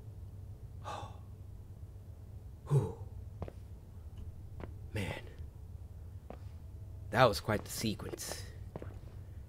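A man speaks in short bursts into a close microphone, with animation.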